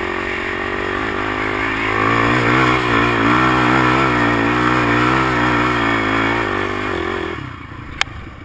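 A quad bike engine revs hard, rising and falling in pitch, as it climbs a dirt track.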